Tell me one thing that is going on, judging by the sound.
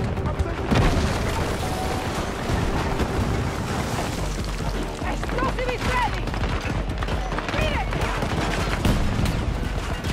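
Loud explosions boom and rumble nearby.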